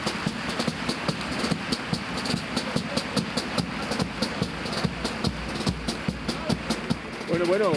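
A guitar strums along.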